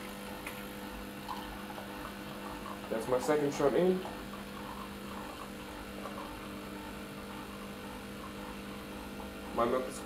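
Coffee trickles into a glass.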